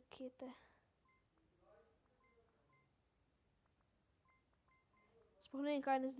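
A short, bright electronic chime plinks several times.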